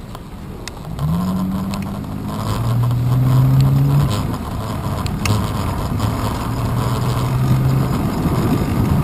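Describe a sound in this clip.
Car engines hum from nearby traffic.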